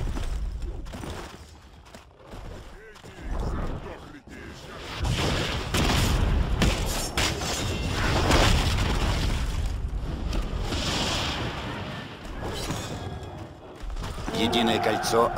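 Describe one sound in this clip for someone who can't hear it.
Magic blasts crackle and whoosh in a game battle.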